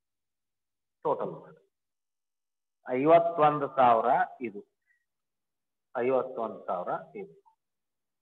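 A middle-aged man speaks calmly in short phrases, as if explaining.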